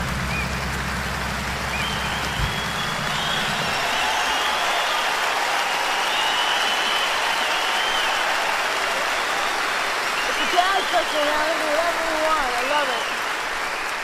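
People in a crowd cheer and whistle.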